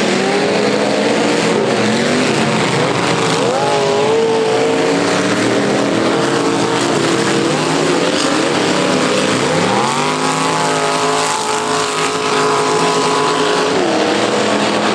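Car engines roar and rev loudly around a dirt track.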